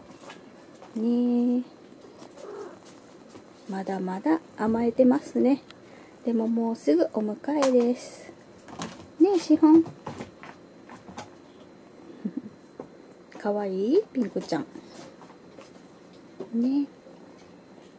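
A kitten mews softly and repeatedly, close by.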